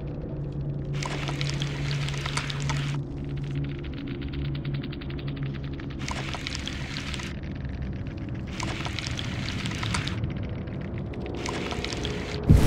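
A game's experience bar fills with a bright rushing electronic sound.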